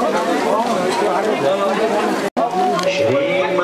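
A crowd of women and men chatters all around.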